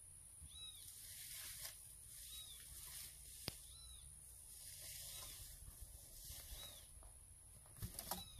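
Wind rumbles softly outdoors.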